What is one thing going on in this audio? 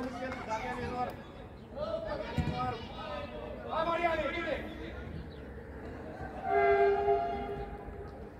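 Young men shout and call out to each other outdoors across an open field.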